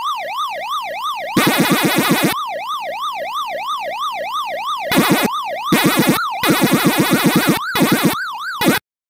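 An electronic siren tone wails up and down steadily.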